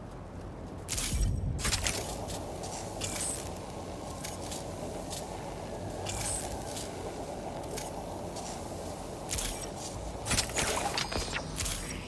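A young man talks into a headset microphone.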